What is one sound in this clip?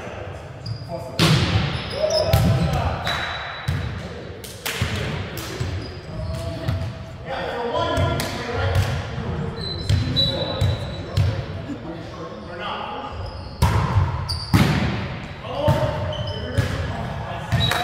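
A volleyball is hit with sharp slaps in a large echoing gym.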